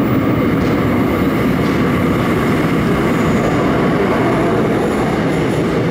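A subway train rumbles out of a tunnel and pulls into a stop.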